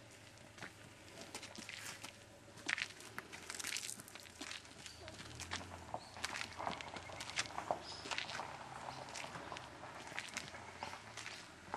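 Footsteps scuff and tap on stone steps.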